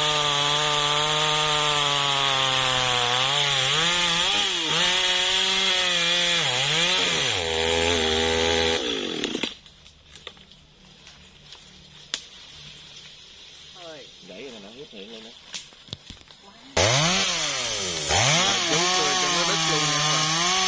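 A chainsaw engine roars and revs loudly.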